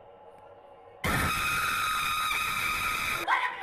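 A woman screams shrilly and loudly.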